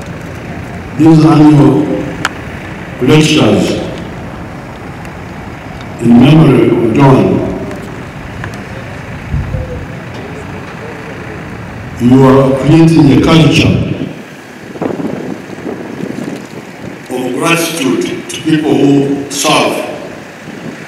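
An elderly man speaks slowly and firmly into a microphone, heard through loudspeakers outdoors.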